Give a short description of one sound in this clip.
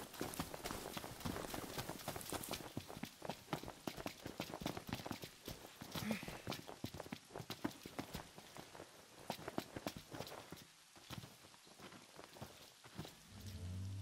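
Footsteps run quickly over rough ground.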